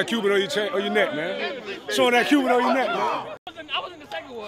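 A young man talks excitedly and laughs close to a microphone.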